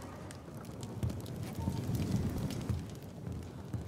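A fire crackles and roars close by.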